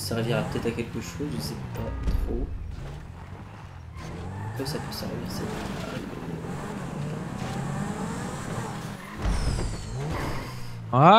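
A sports car engine revs and roars, rising and falling in pitch.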